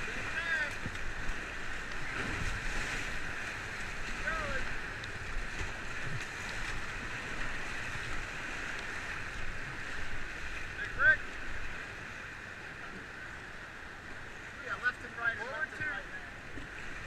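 White-water rapids roar and churn close by.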